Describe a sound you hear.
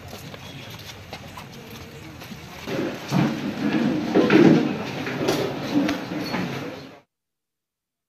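A crowd of men murmurs and chatters close by.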